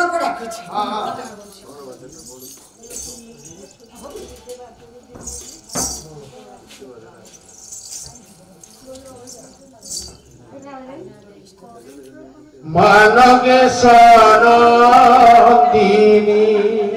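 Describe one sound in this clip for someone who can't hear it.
A hand drum is beaten.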